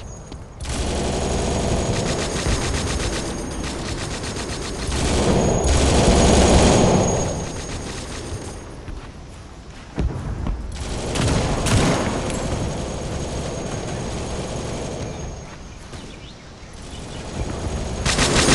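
Footsteps run quickly over stone and earth.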